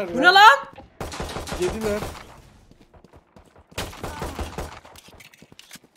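A pistol fires shots.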